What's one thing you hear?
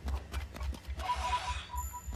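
A short chime rings as an item is picked up.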